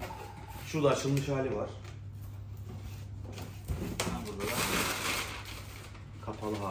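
Packing paper rustles and crinkles.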